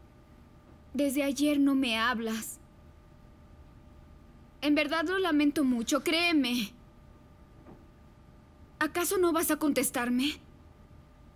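Another young woman speaks close by in an upset, pleading voice.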